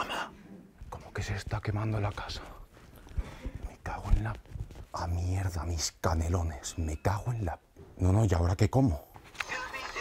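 A young man speaks loudly in a quiet room.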